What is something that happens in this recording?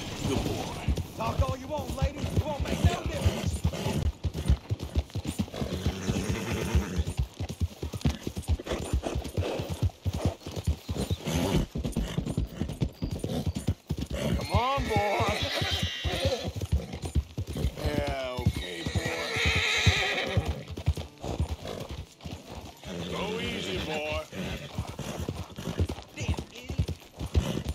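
Horse hooves clop steadily on a dirt path.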